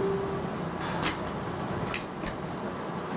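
Objects click and knock sharply.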